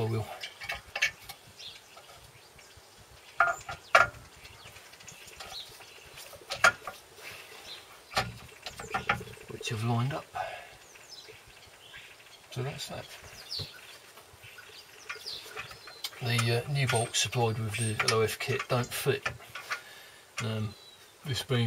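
A metal clutch cover clinks and knocks against a flywheel.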